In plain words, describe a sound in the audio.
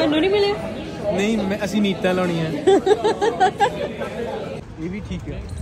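A man laughs and talks with animation close by.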